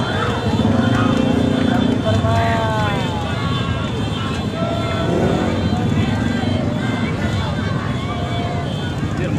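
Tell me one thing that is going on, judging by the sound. Horns honk.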